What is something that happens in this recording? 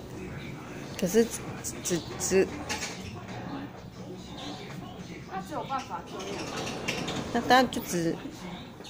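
A young woman speaks to a dog nearby in short, encouraging commands.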